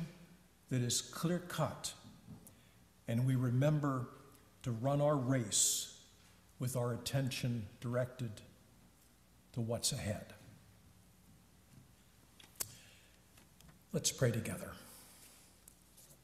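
An elderly man speaks slowly and calmly through a microphone in a reverberant hall.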